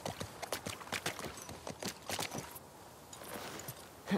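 Horse hooves clop on the ground.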